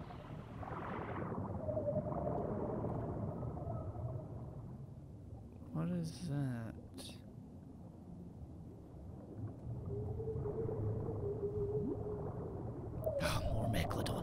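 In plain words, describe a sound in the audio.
Water rumbles and swirls in a muffled, underwater hush.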